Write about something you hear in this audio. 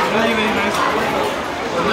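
A fork scrapes on a plate.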